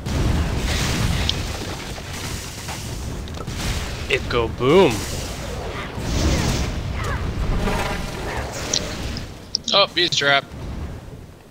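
Magic spells blast and crackle in rapid bursts.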